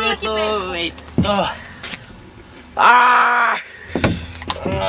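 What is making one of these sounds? A young boy laughs loudly close by.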